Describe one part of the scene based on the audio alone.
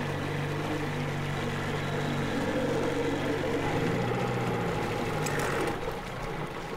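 A motorboat engine hums steadily and then fades.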